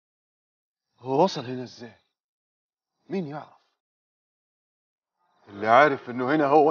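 A man speaks tensely in short bursts, close by.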